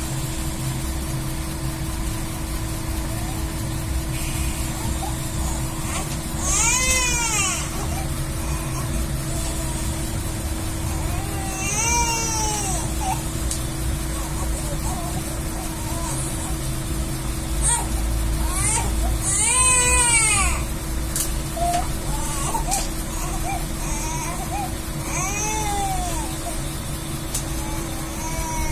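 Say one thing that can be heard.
A vehicle's engine idles with a steady low hum.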